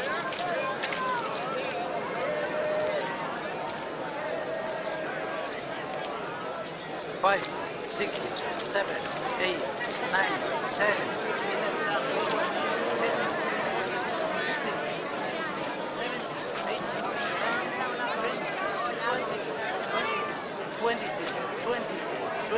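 A crowd of men and women chatter and call out all around.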